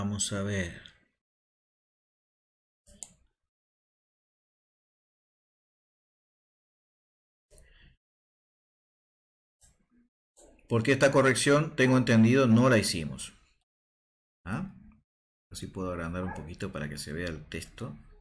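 A man talks calmly close to a microphone, in pauses.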